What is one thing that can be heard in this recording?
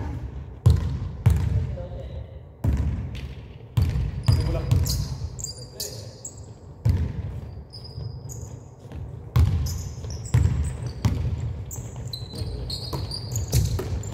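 A basketball bounces on a hard floor, booming in a large echoing gym.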